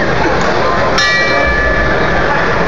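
A boxing ring bell rings once.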